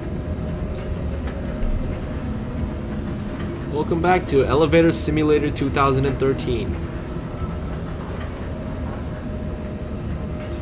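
A lift rumbles and hums steadily as it moves.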